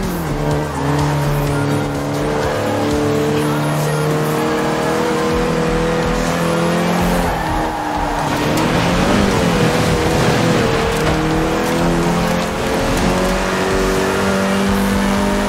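Tyres hiss and skid over an icy road.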